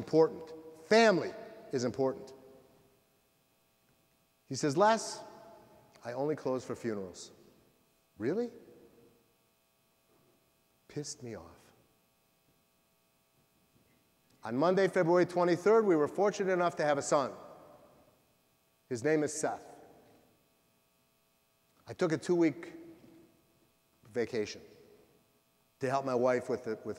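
An older man speaks with animation through a microphone, pausing between phrases.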